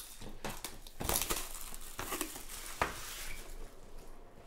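Plastic wrap crinkles and tears.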